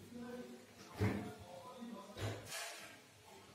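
A refrigerator door clunks open and shut.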